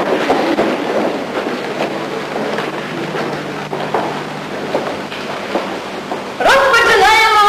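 A choir of men and women sings together.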